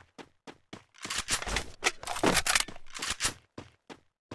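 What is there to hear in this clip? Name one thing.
A gun fires a rapid burst of shots indoors.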